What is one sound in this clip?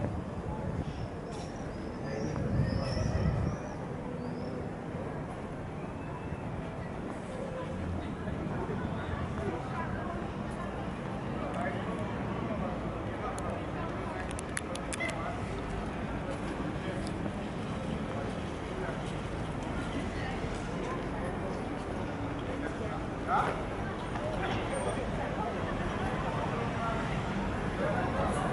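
Footsteps walk along a paved street.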